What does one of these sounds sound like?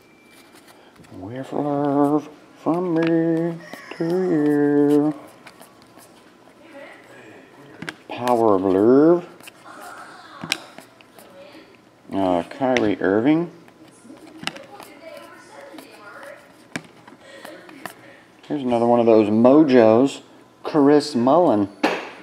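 Stiff trading cards flick and rustle as they are sorted by hand.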